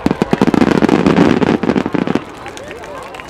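Fireworks crackle loudly overhead.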